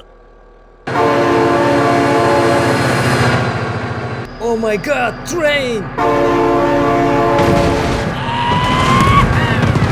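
A diesel locomotive engine rumbles and drones loudly.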